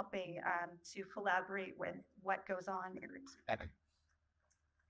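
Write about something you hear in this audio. A woman speaks calmly into a microphone, echoing slightly in a large room.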